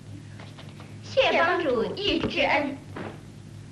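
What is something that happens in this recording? Two young women speak together.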